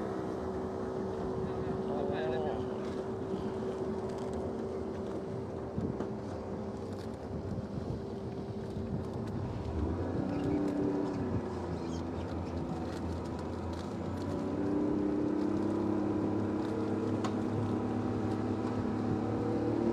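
A boat engine drones steadily throughout.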